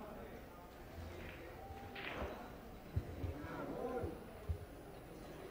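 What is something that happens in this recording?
Pool balls knock together with sharp clicks.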